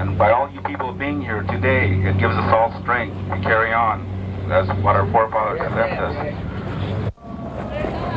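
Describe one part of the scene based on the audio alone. A man speaks outdoors to a small gathering.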